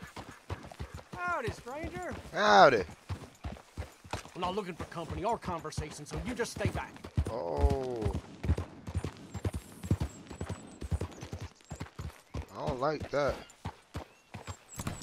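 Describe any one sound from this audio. A man talks with animation into a close microphone.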